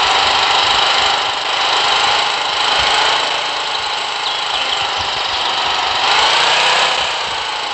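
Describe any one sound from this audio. A motorcycle engine runs with a steady, noisy drone.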